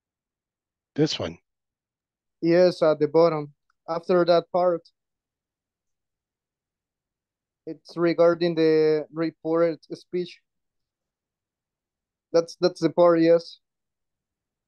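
A man speaks calmly over an online call, in short bursts.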